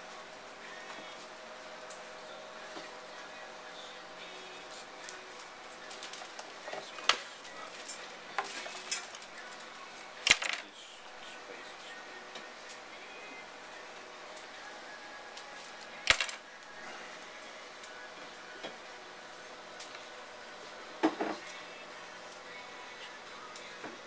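Flower stems rustle and squeak as hands push them into floral foam.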